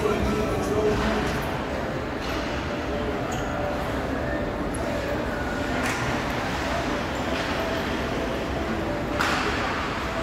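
Hockey sticks and a puck clack on the ice.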